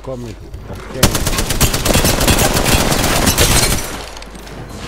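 A video game gun fires in rapid bursts.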